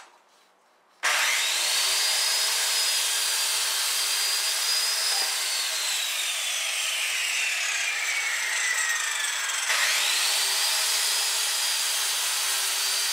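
A circular saw whines loudly as it cuts through wood.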